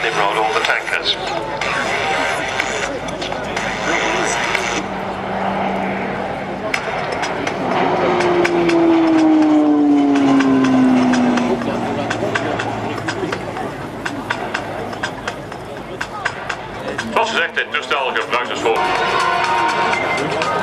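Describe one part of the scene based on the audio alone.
A propeller plane drones overhead, its engine pitch sliding down as it passes by.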